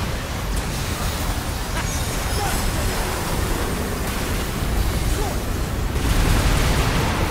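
Explosions boom and roar in rapid succession.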